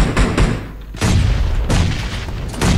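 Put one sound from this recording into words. Rapid gunshots crack out.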